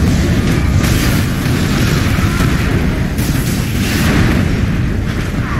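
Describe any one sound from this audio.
Heavy explosions and gunfire rumble and crackle loudly.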